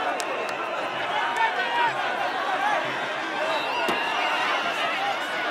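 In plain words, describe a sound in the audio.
A large outdoor crowd cheers and shouts loudly.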